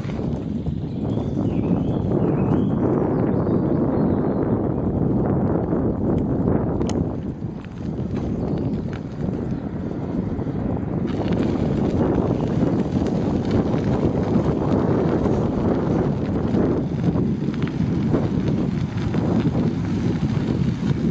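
Wind rumbles against the microphone while moving outdoors.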